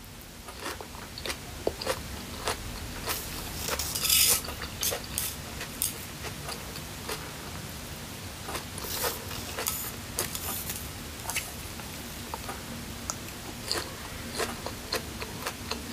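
A young woman chews and smacks her lips right up close to a microphone.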